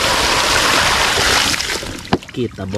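Water pours and splashes onto a hard surface.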